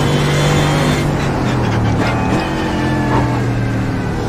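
A race car engine drops in pitch as the driver brakes and shifts down.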